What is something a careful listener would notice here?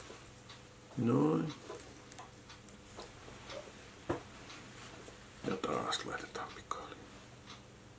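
A man murmurs briefly close by.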